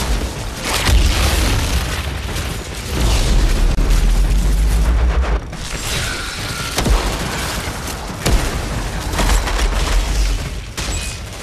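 Loud blasts boom.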